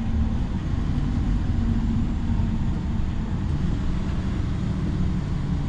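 A bus engine rumbles steadily, heard from inside.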